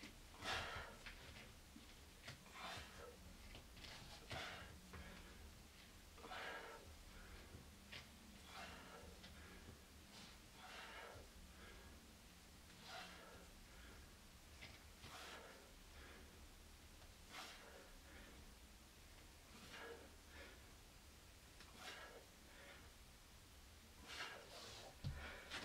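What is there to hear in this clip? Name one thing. A man exhales sharply in a steady rhythm, close by.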